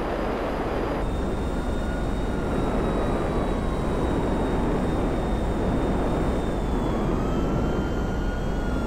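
A jet engine roars steadily as a jet flies overhead.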